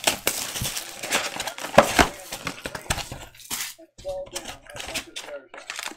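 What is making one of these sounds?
A plastic wrapper crinkles and rustles as it is torn open.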